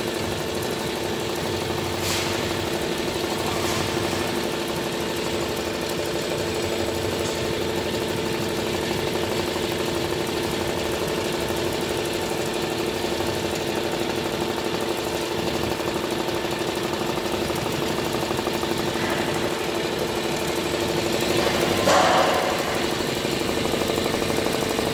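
An embroidery machine hums steadily.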